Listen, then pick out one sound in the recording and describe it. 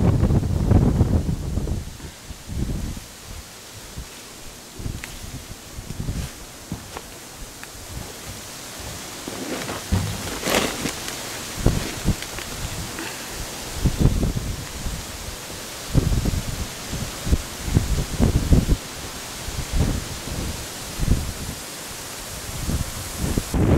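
Wind gusts and buffets outdoors.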